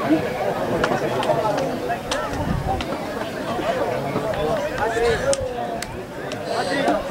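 Young men shout and call out to each other outdoors across an open field.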